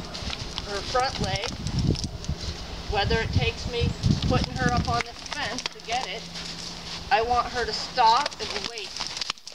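A woman speaks calmly to a horse.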